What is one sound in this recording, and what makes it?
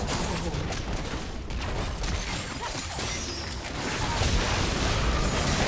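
Game spell effects crackle and boom in a fight.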